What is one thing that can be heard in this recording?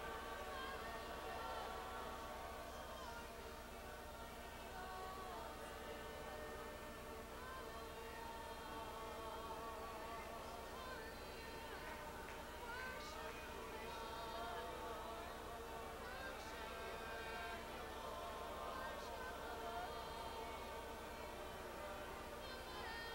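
A large crowd sings together in a big echoing hall.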